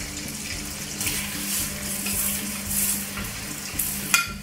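Potato slices drop into hot oil with sudden bursts of hissing.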